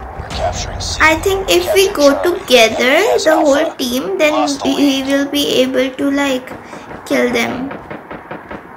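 A young girl talks close to a microphone.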